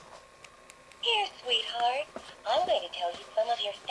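A toy bear plays a tinkling tune.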